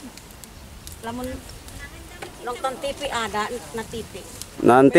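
Women talk quietly at a distance outdoors.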